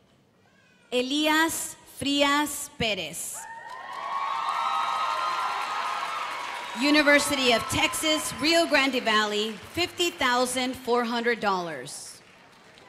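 A woman announces names through a loudspeaker in a large hall.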